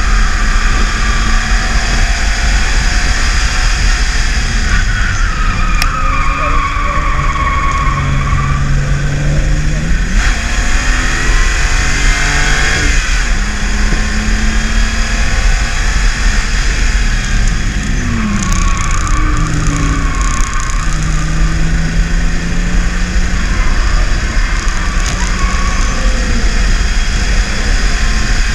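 A car engine roars loudly from inside the cabin, its pitch rising and falling as the car speeds up and slows down.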